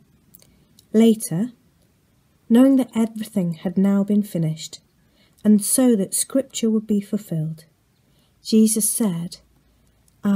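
A woman talks calmly and close to the microphone.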